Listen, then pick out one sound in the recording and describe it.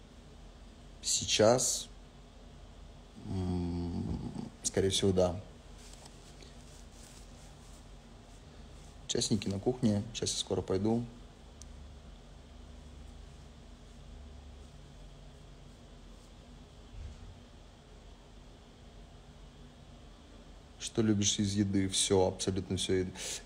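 A young man speaks close by, slowly and wearily, in short bursts with long pauses.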